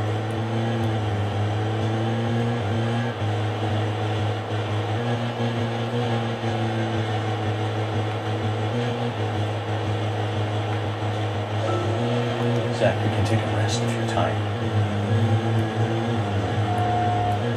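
A car engine hums steadily and changes pitch as it speeds up and slows down.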